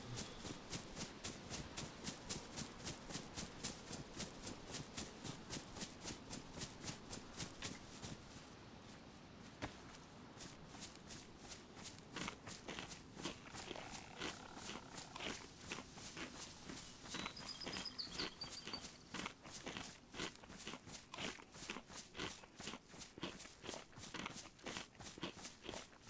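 Footsteps swish steadily through tall grass.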